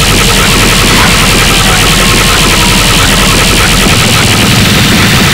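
Rapid punching and impact effects clatter loudly without a break.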